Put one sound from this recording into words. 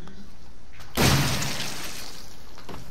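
A shotgun fires a single loud blast that echoes.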